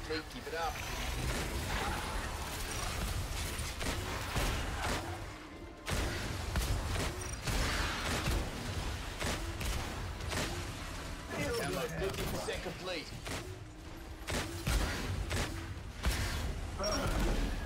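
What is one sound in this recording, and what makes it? Gunfire bursts rapidly.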